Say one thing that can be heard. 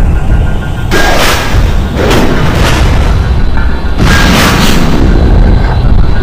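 Steam hisses loudly from pipes in bursts.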